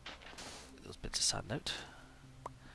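Water bubbles and splashes briefly.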